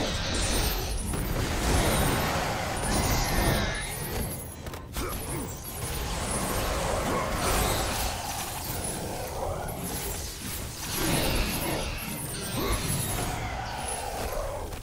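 Blades whoosh and slash through the air.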